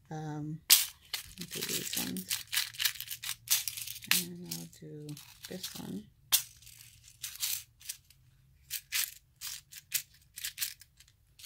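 A small plastic case clicks and rattles as it is handled.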